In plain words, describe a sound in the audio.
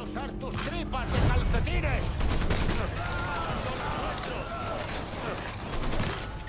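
Rifle shots ring out in quick bursts.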